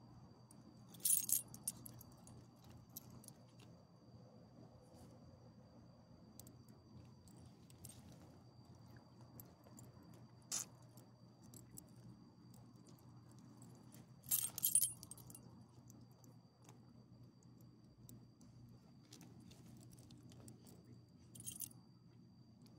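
Metal tags on a small dog's collar jingle briefly now and then.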